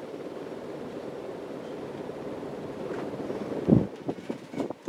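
A ceiling fan whirs steadily.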